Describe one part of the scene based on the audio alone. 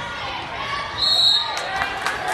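A referee blows a short whistle.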